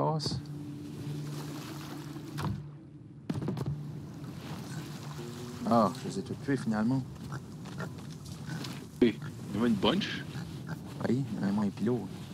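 Gentle waves wash onto a sandy shore.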